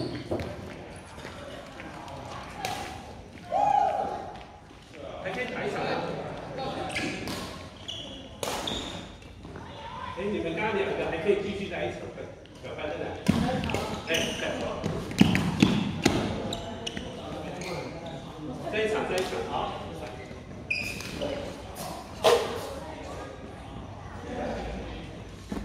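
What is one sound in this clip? Badminton rackets hit a shuttlecock with sharp pops in a large echoing hall.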